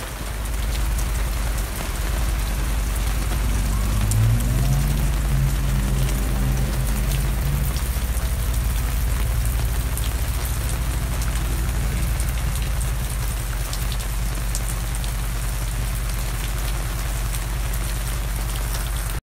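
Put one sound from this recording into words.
Rain patters steadily on a fabric awning overhead.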